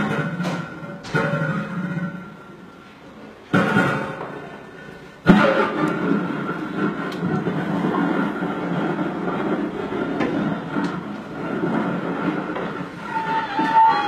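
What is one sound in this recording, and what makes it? A lap steel guitar is plucked, its notes ringing and sliding.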